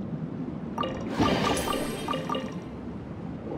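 A treasure chest opens with a bright, ringing chime.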